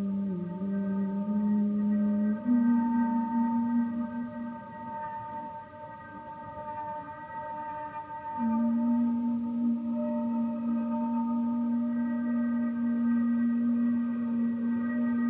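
A double bass is bowed in long, low, sustained notes that ring in a large echoing room.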